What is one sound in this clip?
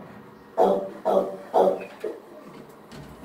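A dog barks loudly up close a few times.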